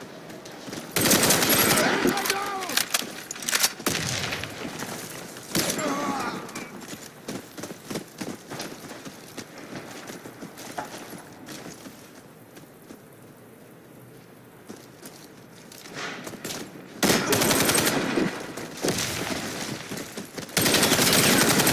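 Rapid bursts of gunfire ring out close by.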